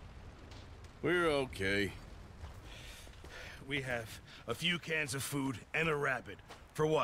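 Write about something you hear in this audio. A second man answers in a low, gruff voice.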